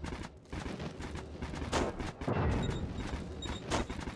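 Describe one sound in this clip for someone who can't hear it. A magical portal hums and crackles.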